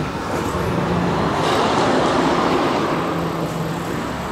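A car drives past on the road nearby.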